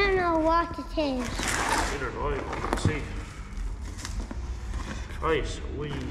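Paper packing rustles and crinkles.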